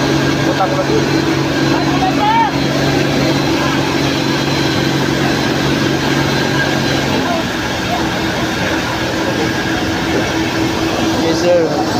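A crowd of men and women murmur and call out nearby.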